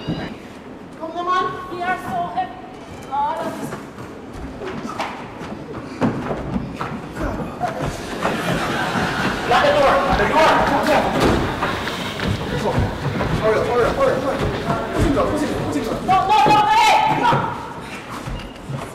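A man speaks loudly and urgently.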